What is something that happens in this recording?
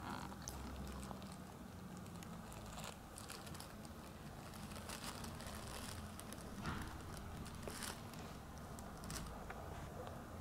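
Plastic sheeting rustles and crinkles.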